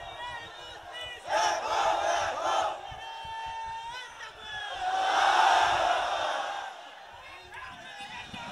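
A man chants in a melodic voice through a microphone and loudspeakers.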